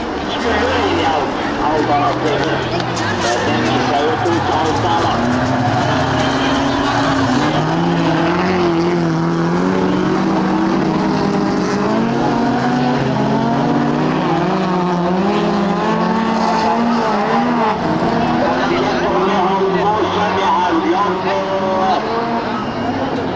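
Several racing car engines roar and rev loudly as the cars race past.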